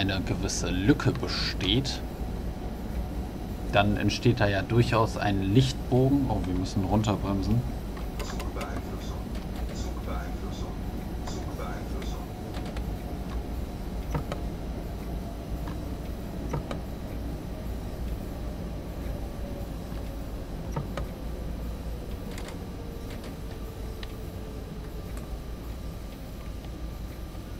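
A train engine hums and rumbles steadily along the rails.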